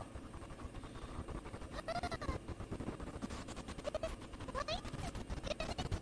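A girl sobs and sighs.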